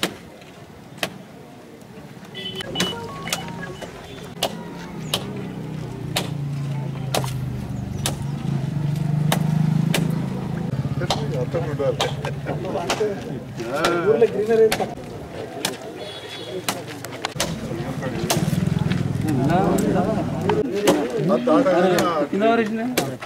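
Coconuts crack sharply as they are smashed on a stone, again and again.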